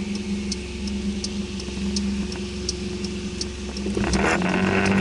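A car engine hums steadily at idle.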